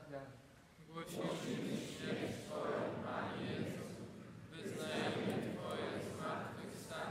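An elderly man prays aloud steadily through a microphone, his voice echoing.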